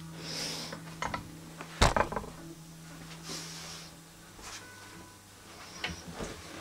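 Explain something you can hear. An electric guitar knocks and bumps close by.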